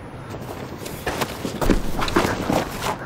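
Two young men scuffle and grapple against a wall.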